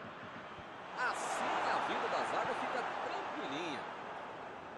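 A stadium crowd cheers loudly in a sudden swell.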